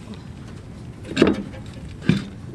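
A woman sits down heavily on the ground.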